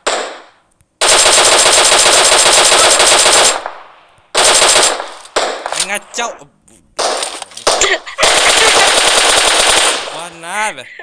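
Rapid gunshots ring out.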